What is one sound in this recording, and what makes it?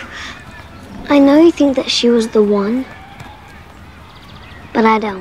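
A young girl speaks softly and thoughtfully close by.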